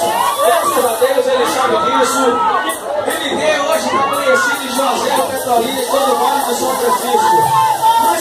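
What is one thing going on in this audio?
A young man sings into a microphone over loudspeakers.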